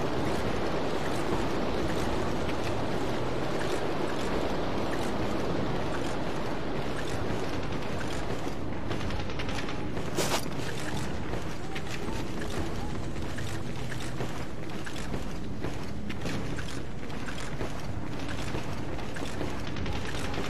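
Footsteps tread steadily over grass and gravel.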